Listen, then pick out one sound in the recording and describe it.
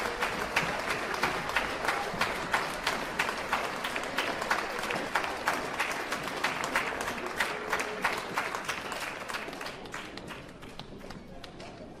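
A large theatre audience applauds loudly with dense clapping that fades away.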